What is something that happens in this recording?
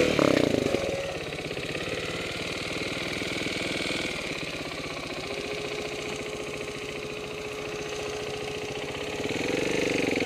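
A dirt bike engine idles with a low steady putter.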